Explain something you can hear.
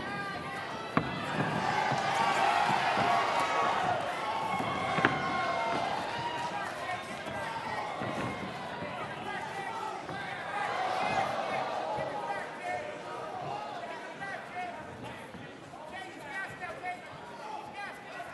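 Boxing gloves thud against each other.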